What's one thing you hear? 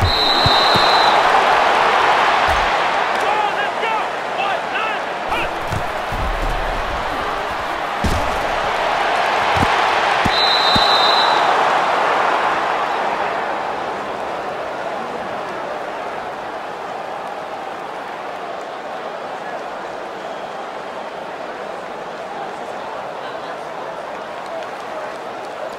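A large stadium crowd roars and cheers, then slowly fades to a low murmur.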